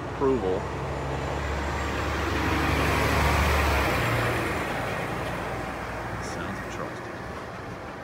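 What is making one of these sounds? A large truck rumbles past close by, its engine swelling and then fading.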